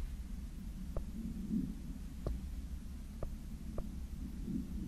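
Menu clicks tick softly now and then.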